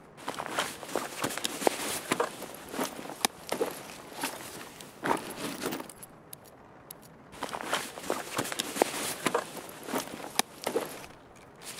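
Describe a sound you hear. Gear rustles and clicks as items are moved about.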